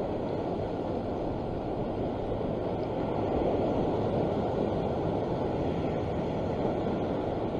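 Wind blows outdoors, rumbling.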